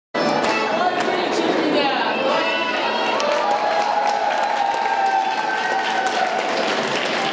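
A crowd of people chatters and cheers loudly in a large echoing hall.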